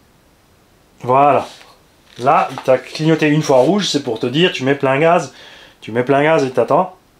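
A middle-aged man speaks calmly close by.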